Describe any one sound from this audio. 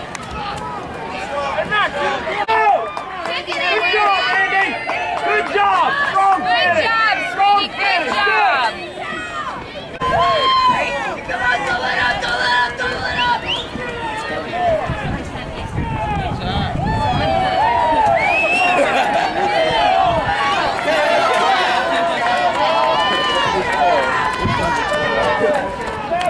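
A crowd of spectators cheers and shouts nearby outdoors.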